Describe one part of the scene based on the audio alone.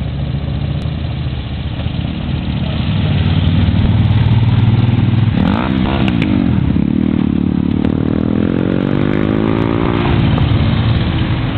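Motorcycle engines rumble loudly as a line of bikes rides past close by.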